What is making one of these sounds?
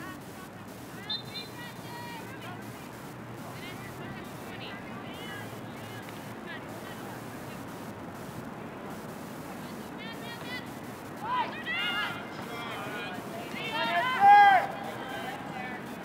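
Young women shout and call out across an open field outdoors.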